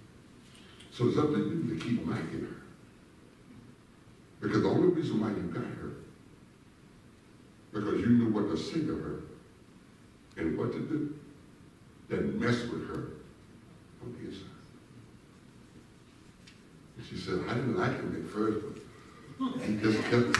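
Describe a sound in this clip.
A man speaks in short, measured phrases through a loudspeaker in a large echoing hall.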